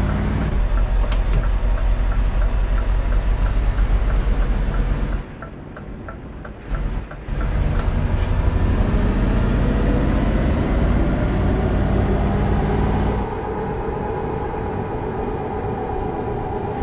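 A truck engine rumbles steadily, rising and easing with the throttle.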